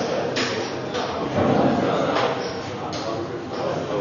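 A cue strikes the cue ball with a sharp click.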